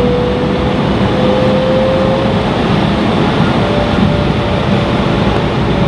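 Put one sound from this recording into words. Jet engines roar steadily with a high whine, heard from inside an aircraft cabin.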